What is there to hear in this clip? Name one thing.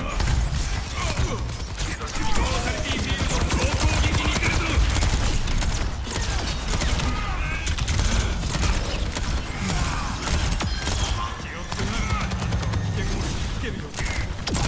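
Rapid gunfire rattles from a rifle.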